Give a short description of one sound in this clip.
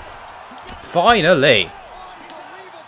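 Punches thud against a body.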